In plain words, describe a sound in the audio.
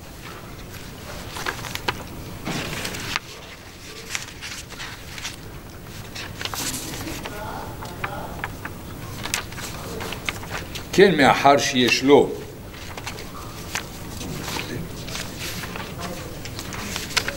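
Paper rustles and crinkles as sheets are shuffled close by.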